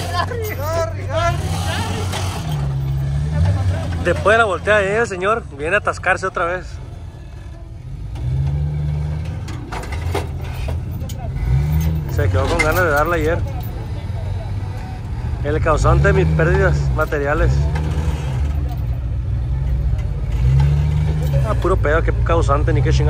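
A rock crawler buggy's engine revs in bursts as it climbs a rock face.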